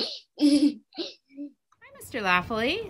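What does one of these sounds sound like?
A young boy speaks cheerfully over an online call.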